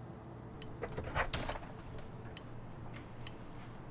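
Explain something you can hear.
A front door opens.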